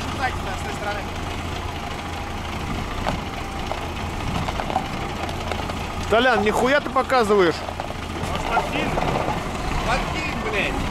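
A truck engine idles with a low steady rumble.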